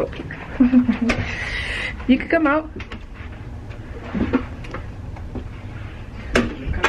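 A young woman talks and laughs close to a phone microphone.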